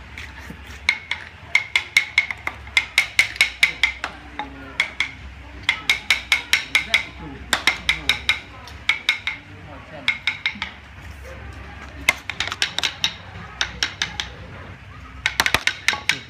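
A mallet taps rapidly on a chisel, carving wood close by.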